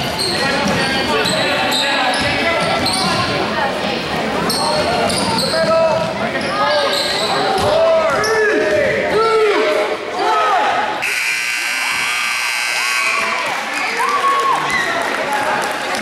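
Sneakers squeak sharply on a hard floor in a large echoing gym.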